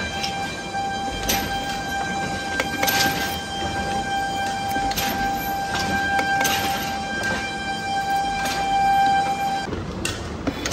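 A milling machine whirs steadily as it cuts into metal.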